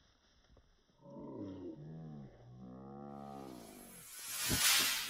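A large dog growls and snarls up close.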